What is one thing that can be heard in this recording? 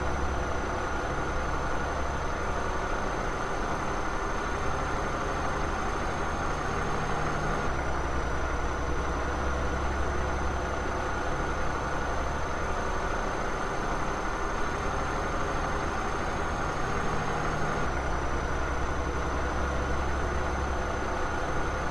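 A truck engine hums steadily as the truck drives along a road.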